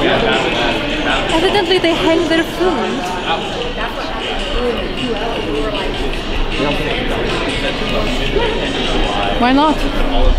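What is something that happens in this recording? A young woman talks closely.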